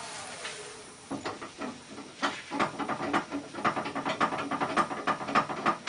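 A drill bit scrapes and grinds into wood.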